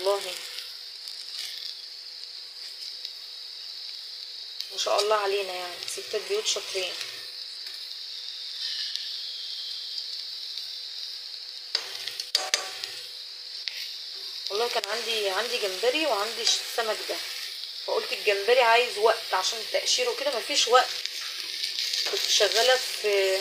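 Fish sizzles steadily in hot oil.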